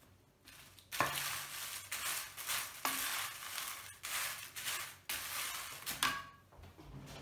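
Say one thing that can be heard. Dry chili peppers rustle and crackle as a wooden spatula stirs them in a pan.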